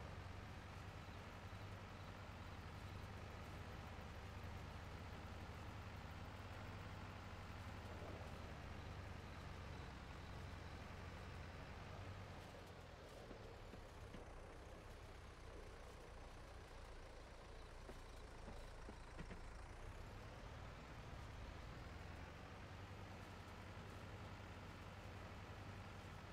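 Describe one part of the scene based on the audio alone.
A tractor engine drones steadily, rising and falling slightly in pitch.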